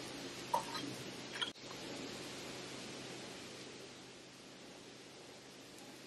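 Milk pours and splashes into a jar of liquid.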